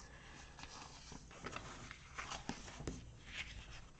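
Paper sheets rustle and slide as they are handled.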